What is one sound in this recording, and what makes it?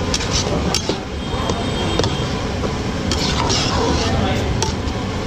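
A metal ladle scrapes and clinks against a metal pot.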